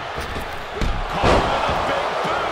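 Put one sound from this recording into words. A heavy body slams onto a wrestling ring mat with a loud thud.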